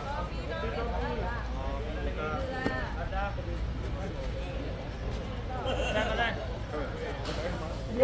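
A man speaks nearby.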